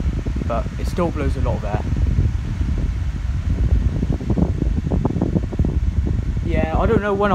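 An electric fan hums and whirs steadily with a low rushing of air.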